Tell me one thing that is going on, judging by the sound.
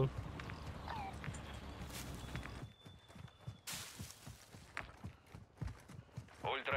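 Footsteps rustle through grass at a steady walking pace.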